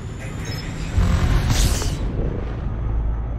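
A spaceship surges with a loud whoosh.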